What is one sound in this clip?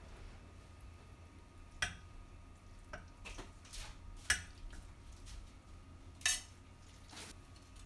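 Chopsticks tap against a ceramic plate.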